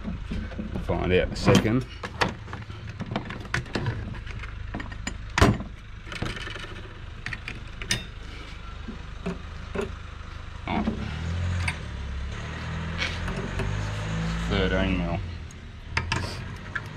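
Metal tools clink and rattle against each other.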